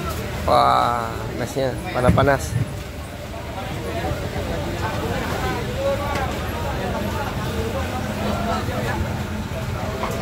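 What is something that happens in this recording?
A busy outdoor market crowd chatters all around.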